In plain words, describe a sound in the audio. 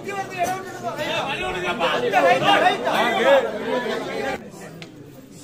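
Men shout excitedly nearby.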